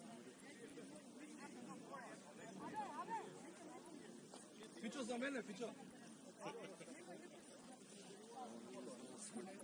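Young players call out and chatter in the open air.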